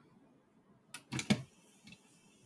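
A plastic connector clicks into place.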